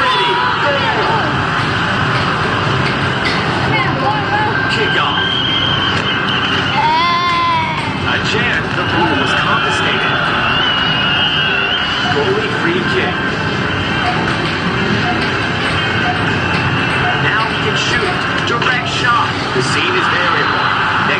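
An arcade soccer game plays loud crowd noise.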